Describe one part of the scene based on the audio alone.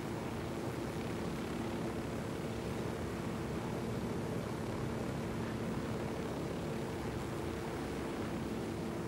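A helicopter's rotor thumps and whirs steadily.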